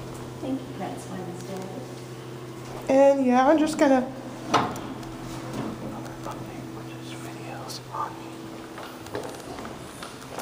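An elevator hums steadily.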